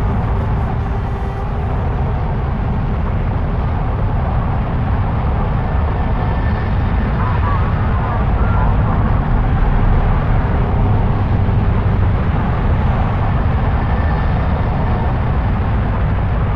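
A huge vehicle rumbles heavily over sand with a deep, steady engine drone.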